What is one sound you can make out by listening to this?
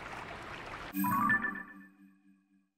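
A soft electronic chime sounds as a menu opens.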